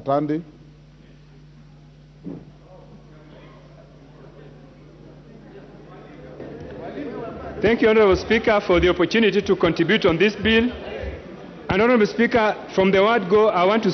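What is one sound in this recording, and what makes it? A man speaks forcefully through a microphone in a large echoing hall.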